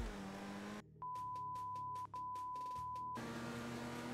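A steady test tone beeps over static.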